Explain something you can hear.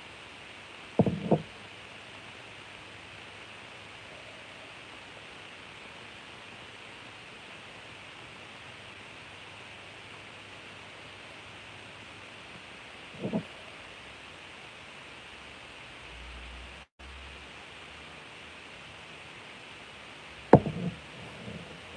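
A glass measuring cup knocks against a hard surface.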